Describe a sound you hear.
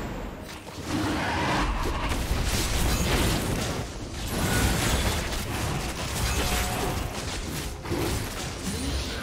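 Game spells and attacks crackle and burst during a hectic fight.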